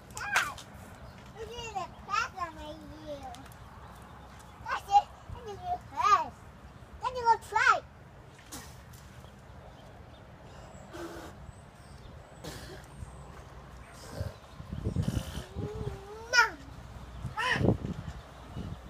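A young child babbles and squeals excitedly close by.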